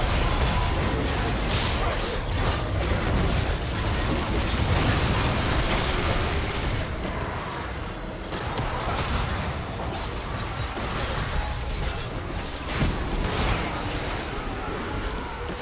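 Magic blasts and weapon strikes crackle and boom in a fast video game battle.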